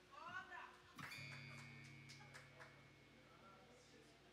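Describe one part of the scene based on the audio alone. An acoustic guitar is strummed and rings out.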